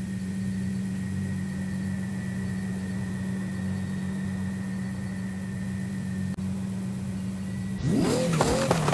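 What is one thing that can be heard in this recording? A sports car engine idles with a low, steady hum.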